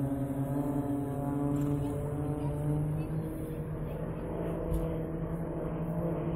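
A jet engine roars steadily in the distance.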